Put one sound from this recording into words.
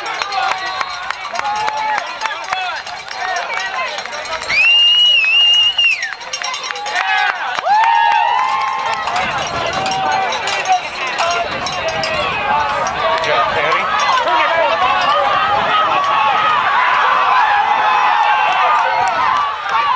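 A crowd cheers and shouts outdoors, growing louder.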